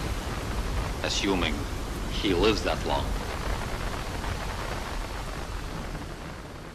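Waves crash and churn on rough water.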